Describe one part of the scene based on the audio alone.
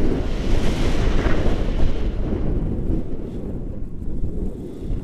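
Wind rushes and buffets loudly against a microphone outdoors.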